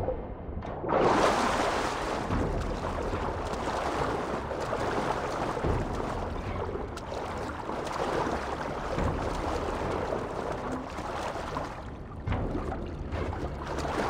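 Water splashes and laps steadily.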